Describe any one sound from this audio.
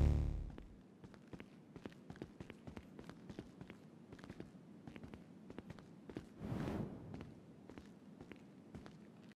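Footsteps tap quickly on a hard floor and stairs.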